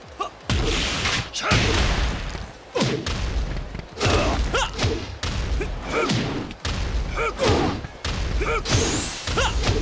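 Punches and kicks land with heavy thuds and cracks, over and over.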